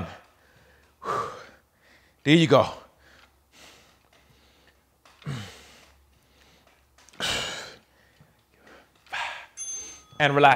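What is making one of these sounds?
A man breathes out hard with effort.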